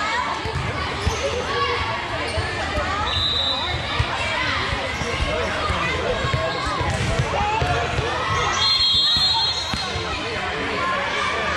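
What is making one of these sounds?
A volleyball thumps as it is hit.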